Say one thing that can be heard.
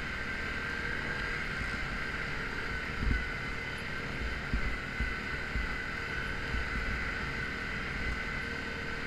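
An all-terrain vehicle engine drones steadily close by.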